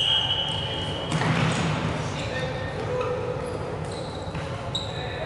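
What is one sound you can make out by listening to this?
Balls thud on a hard floor and bounce.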